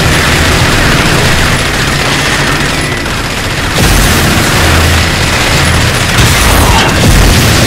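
A buggy engine roars loudly at speed.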